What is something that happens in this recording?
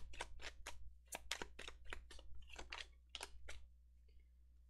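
Playing cards riffle and snap as a deck is shuffled by hand.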